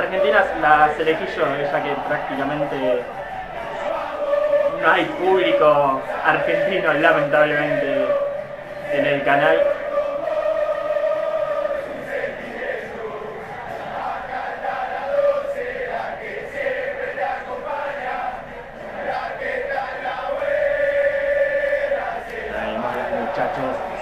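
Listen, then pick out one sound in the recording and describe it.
A large stadium crowd sings and chants loudly in unison.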